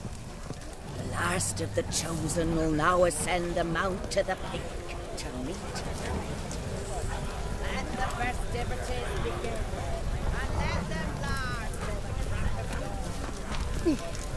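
A large bonfire roars and crackles.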